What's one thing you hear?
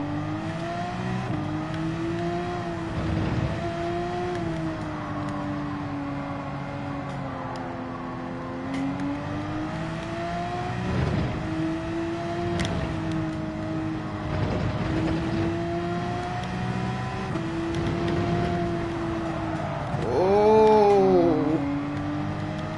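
A racing car engine roars steadily, its pitch rising and falling with speed.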